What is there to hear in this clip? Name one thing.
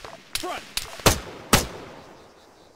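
A rifle fires several sharp shots in quick succession.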